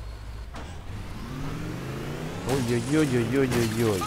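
A vehicle crashes and tumbles over with a heavy thud.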